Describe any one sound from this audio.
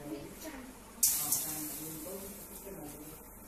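Lentils pour into a metal pan.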